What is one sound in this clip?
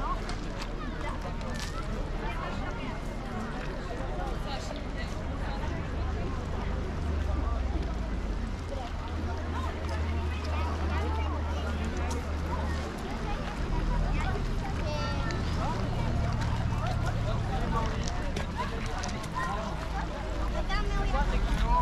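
A crowd of people chatter and call out nearby, outdoors.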